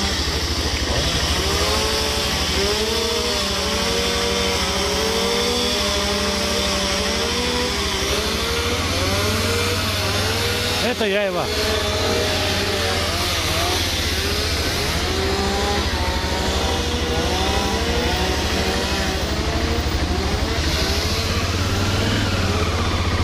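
Wind buffets a nearby microphone.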